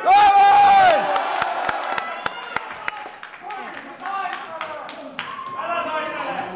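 Slaps and thuds sound from wrestlers striking each other.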